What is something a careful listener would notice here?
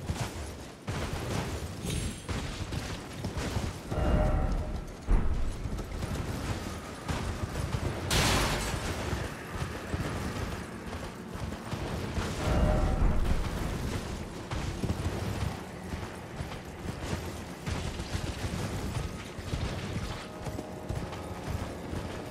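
A horse's hooves gallop steadily over dry ground.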